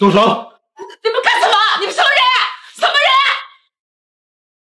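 An elderly woman shouts in alarm.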